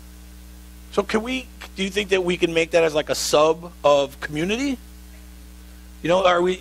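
A man speaks to an audience with animation.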